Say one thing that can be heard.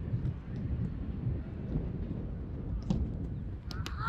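A football is kicked on grass.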